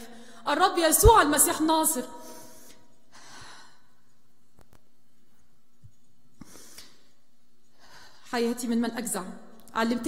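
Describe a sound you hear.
A woman speaks emotionally through a microphone in a reverberant hall, pausing between phrases.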